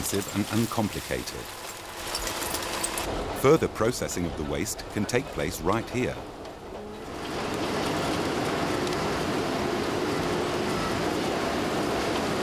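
Rubbish tumbles and clatters out of a truck.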